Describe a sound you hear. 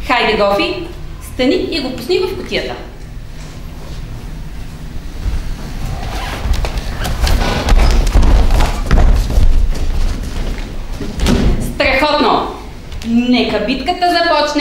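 A young woman speaks with animation from across a room.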